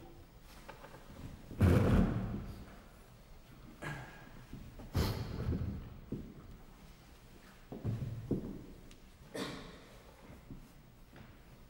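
A string quartet plays sharp, accented chords with pauses between them.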